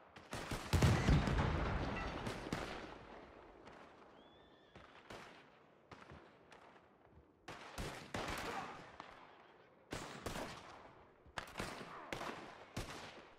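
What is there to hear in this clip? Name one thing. Rifle shots ring out, each one echoing away.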